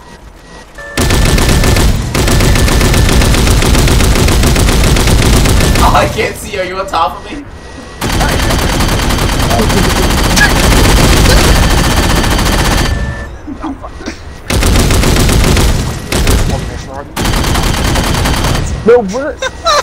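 Heavy gunfire roars in loud bursts.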